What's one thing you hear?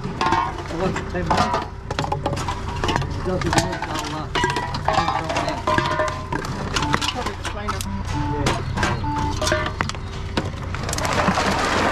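A recycling machine hums and beeps as containers go in.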